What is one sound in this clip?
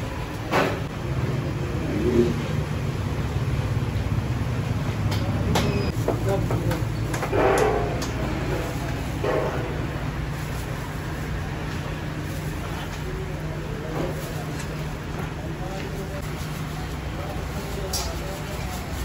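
A metal ladle scrapes and knocks against a metal pot.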